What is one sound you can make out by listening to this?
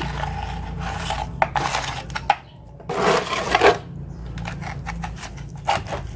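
A trowel scrapes wet cement across a plastic mould.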